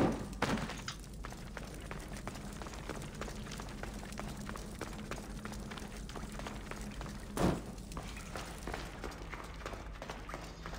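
Footsteps crunch steadily on gravelly ground.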